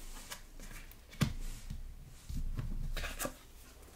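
A playing card slides softly across a tabletop.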